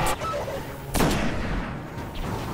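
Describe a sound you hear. A fiery explosion bursts and rumbles.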